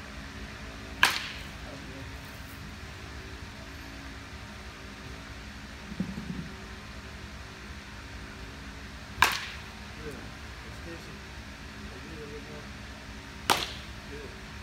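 A metal bat cracks sharply against a baseball, several times.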